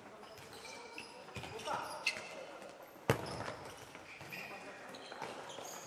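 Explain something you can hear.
Sneakers squeak sharply on a hard indoor court.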